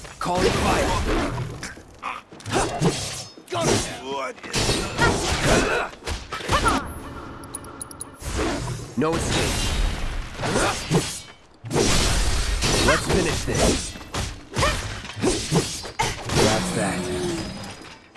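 Fiery blasts burst and crackle.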